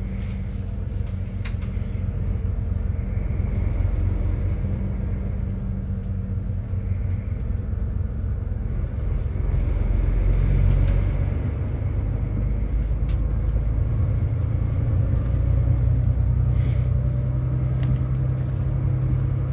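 A bus engine hums and rumbles steadily from inside the cabin.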